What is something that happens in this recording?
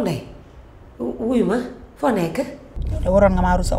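A woman answers on a phone, close by.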